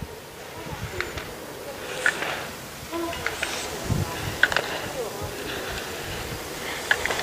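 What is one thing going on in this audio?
Slalom poles clack as a skier knocks them aside.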